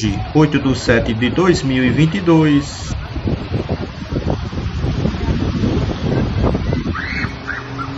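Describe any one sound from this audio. Floodwater flows steadily.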